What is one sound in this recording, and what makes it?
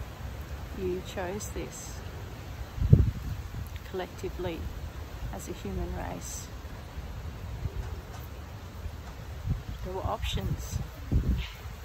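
A woman speaks calmly and close by, with pauses.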